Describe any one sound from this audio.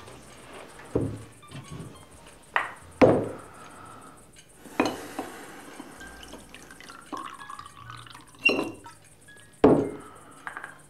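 A glass bottle knocks down onto a table.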